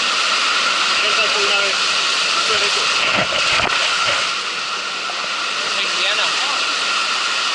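Men talk and call out nearby over the rushing water.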